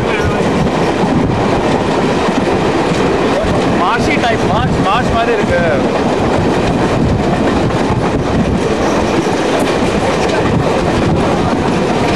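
Wind blusters steadily across open water.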